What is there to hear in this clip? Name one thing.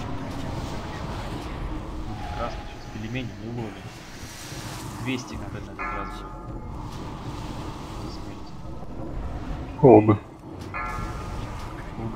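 Spell effects crackle and whoosh in a busy battle.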